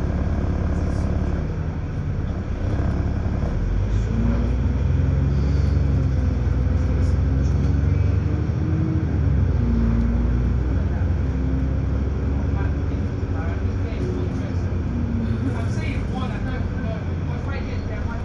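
A bus engine rumbles and whines steadily as the bus drives along.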